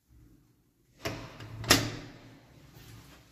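A door handle clicks and a door opens.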